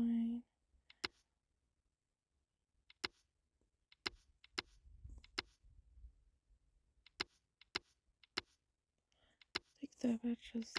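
Soft clicks sound from a game menu.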